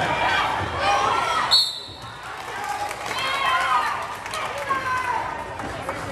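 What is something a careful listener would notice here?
Young people talk nearby in a large echoing gym.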